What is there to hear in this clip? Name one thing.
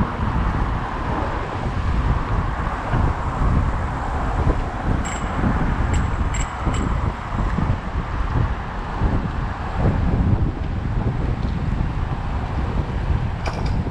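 Wind rumbles and buffets loudly throughout, outdoors while moving.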